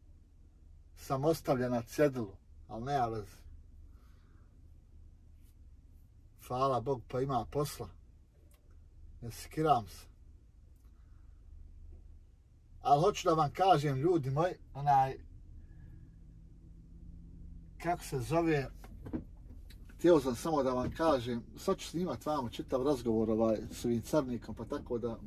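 A young man speaks calmly close by, in short bursts.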